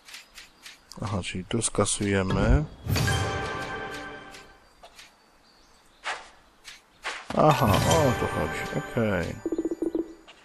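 Swelling magical whooshes and chimes ring out as game units attack.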